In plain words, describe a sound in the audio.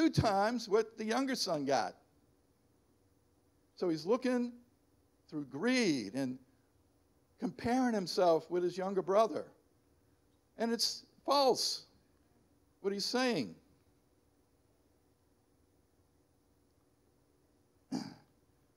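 An elderly man speaks calmly into a microphone, heard through loudspeakers, with pauses between phrases.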